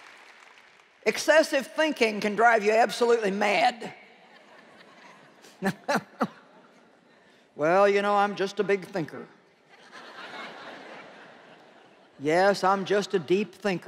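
A middle-aged woman speaks calmly into a microphone in a large hall.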